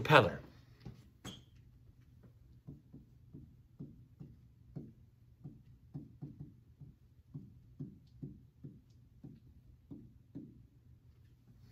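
A pen taps softly on a board.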